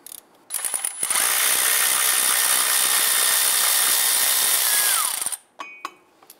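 A power impact wrench whirs loudly, then stops.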